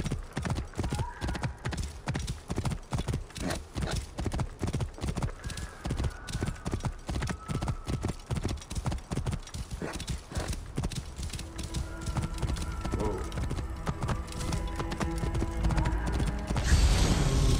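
Horse hooves gallop quickly over dry ground.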